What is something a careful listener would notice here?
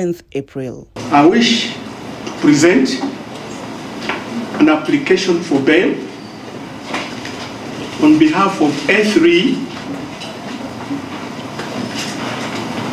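An elderly man speaks slowly and deliberately into a microphone, reading out in an echoing room.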